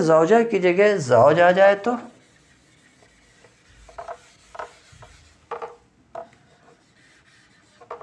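An eraser rubs on a whiteboard.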